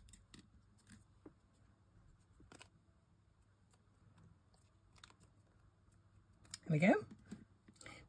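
A piece of card rustles as fingers handle it.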